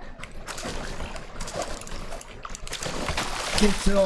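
Water splashes as a spear strikes a fish.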